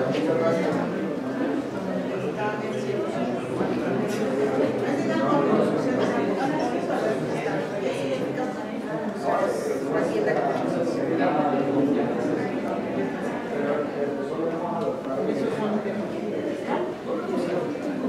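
A crowd of men and women chatters in the background indoors.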